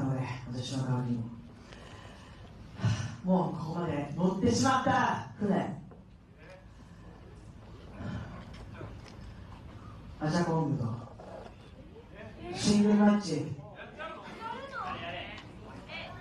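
A woman speaks loudly into a microphone, heard through loudspeakers in a large echoing hall.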